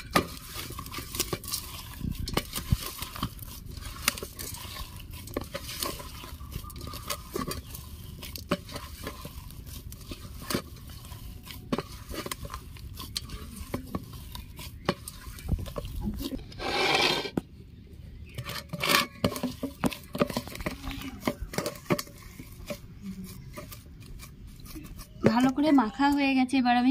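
Knuckles thud and scrape on the bottom of a metal bowl.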